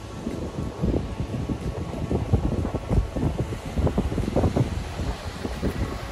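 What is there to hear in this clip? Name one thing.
Waves break on the shore nearby.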